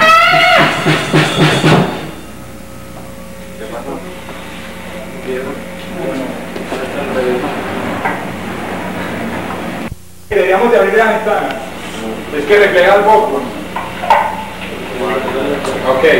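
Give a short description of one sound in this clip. Electric guitars play loudly through amplifiers.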